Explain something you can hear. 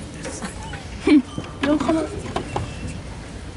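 A small child babbles close by.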